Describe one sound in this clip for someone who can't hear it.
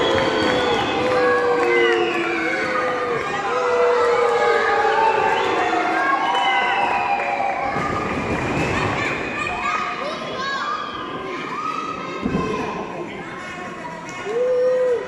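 Spectators shout and cheer in an echoing indoor arena.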